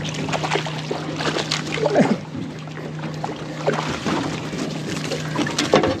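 A fish splashes in the water close by.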